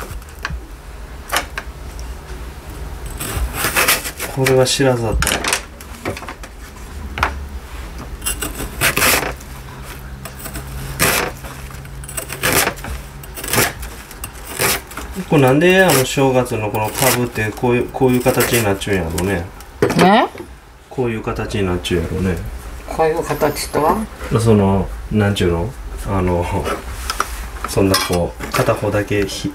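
A knife chops sharply on a cutting board.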